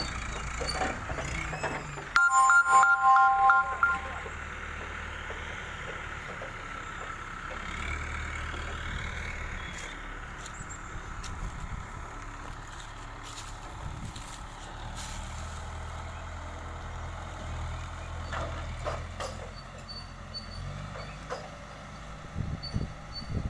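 A heavy truck engine idles with a low, steady rumble nearby.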